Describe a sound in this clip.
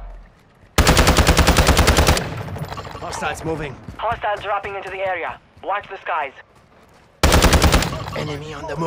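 A rifle fires rapid bursts of loud shots.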